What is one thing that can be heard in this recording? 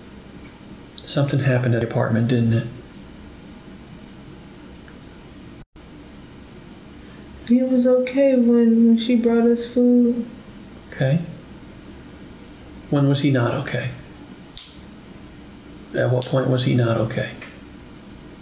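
A man speaks calmly in a small room, heard from a distance.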